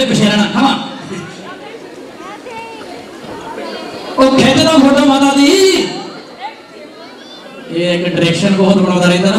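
A man sings loudly through a microphone over loudspeakers.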